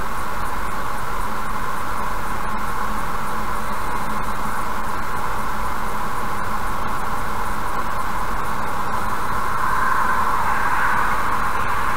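Tyres roar steadily on a highway from inside a moving car.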